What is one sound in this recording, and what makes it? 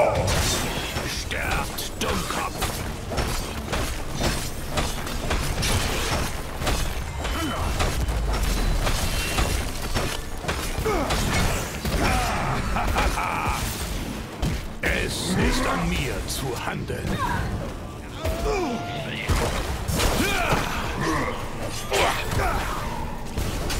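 Game combat sounds of spells and blows clash rapidly.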